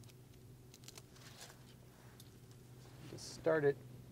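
Backing paper is peeled off a sticky strip with a soft rustle.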